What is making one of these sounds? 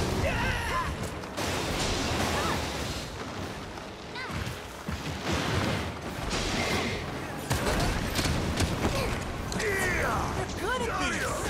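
Heavy blows clang and thud in quick succession.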